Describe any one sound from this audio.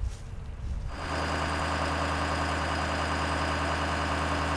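A truck engine idles close by with a steady hum.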